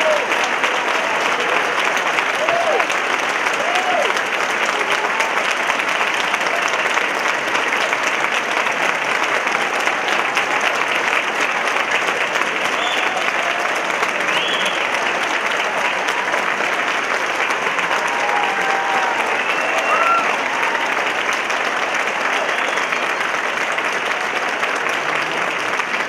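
A large audience applauds loudly and steadily in an echoing hall.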